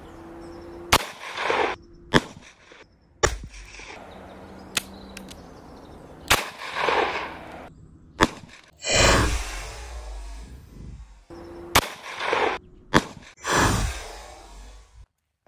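Revolver shots ring out one at a time outdoors, each followed by a fading echo.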